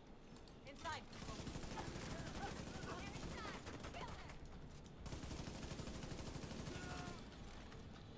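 Gunfire bursts in rapid rattling volleys.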